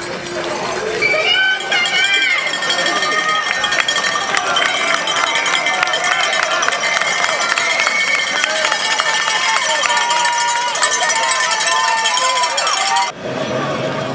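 A crowd cheers and shouts encouragement outdoors.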